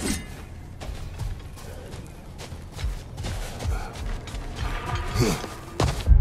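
Heavy footsteps thud on hard ground.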